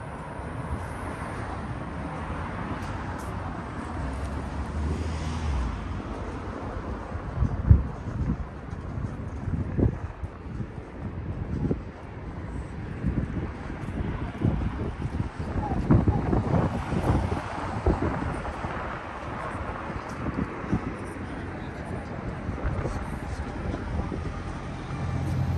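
Traffic hums steadily along a city street outdoors.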